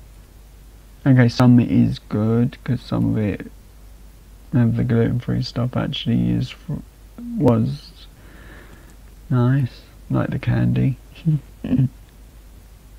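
A young man speaks casually into a close microphone, heard through an online call.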